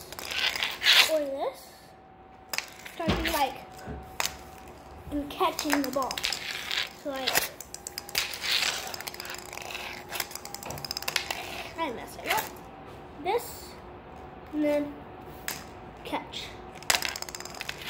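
A plastic ball and scoop knock and clatter on a hard floor.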